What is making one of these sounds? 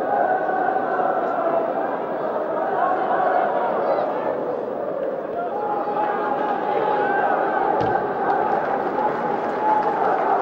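A large stadium crowd chants and cheers steadily, heard from a distance.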